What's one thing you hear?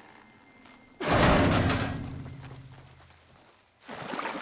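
A heavy metal hatch bangs open with a deep, ringing boom.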